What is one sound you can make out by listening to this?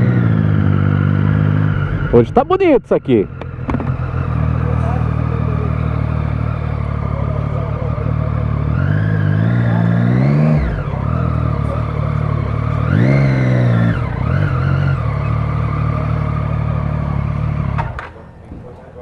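A motorcycle engine rumbles steadily close by.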